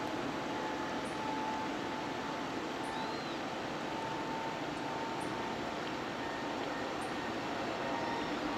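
A jet airliner's engines roar steadily as it rolls along a runway.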